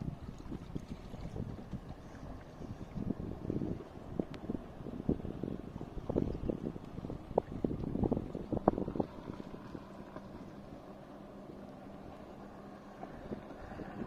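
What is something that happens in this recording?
Water splashes and slaps against a boat's hull.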